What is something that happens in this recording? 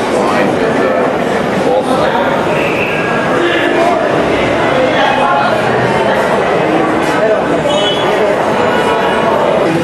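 A crowd of people chatter all around in a busy, echoing room.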